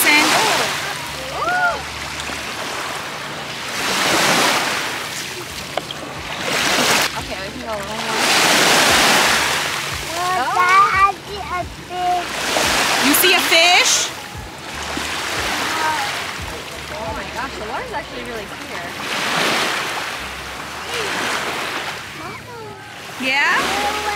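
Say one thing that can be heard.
Small waves wash onto a pebbly shore in rolling swells.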